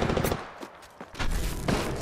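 Electricity crackles and buzzes sharply.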